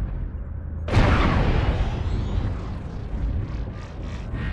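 A loud explosion booms and rumbles away.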